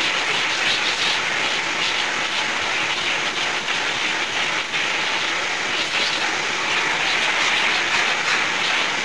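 A vacuum cleaner roars steadily close by.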